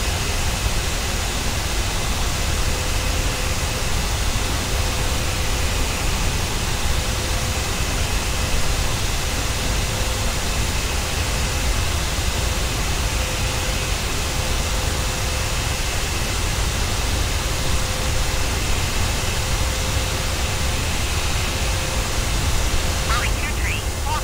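Twin jet engines of an airliner drone at cruise, with a steady whine.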